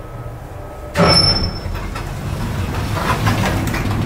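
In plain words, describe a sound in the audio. Elevator doors slide open with a thud.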